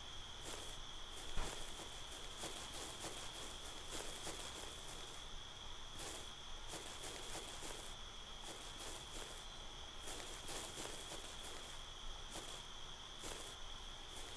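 Footsteps crunch steadily over gravel.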